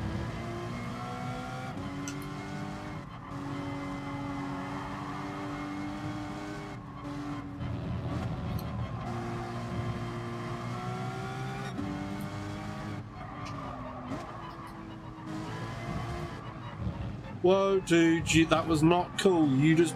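A racing car engine revs high and shifts up through the gears.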